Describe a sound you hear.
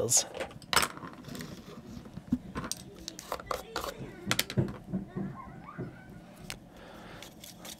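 A lid scrapes and clicks on a small round container.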